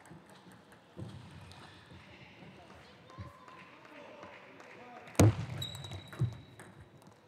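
A table tennis ball clicks off paddles and the table in a rally, in a large echoing hall.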